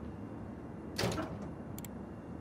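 A metal cabinet door rattles open.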